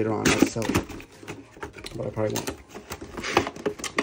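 Cardboard scrapes and slides as a box is opened.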